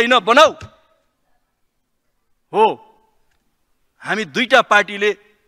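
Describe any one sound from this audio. A man speaks firmly into a microphone in short bursts with long pauses.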